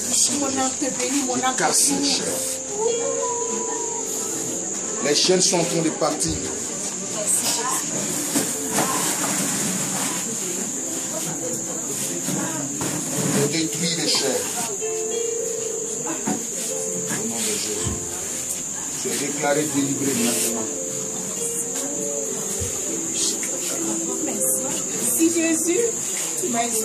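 A young woman moans and cries out nearby.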